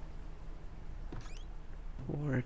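A fist knocks on a wooden door.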